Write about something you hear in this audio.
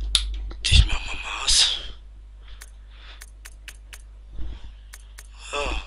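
Short menu clicks tick as a selection changes.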